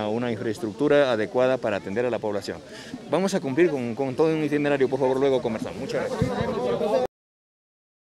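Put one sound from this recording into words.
A man speaks with animation into microphones close by.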